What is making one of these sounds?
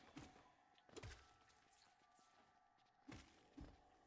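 A sword slashes and strikes with sharp hits.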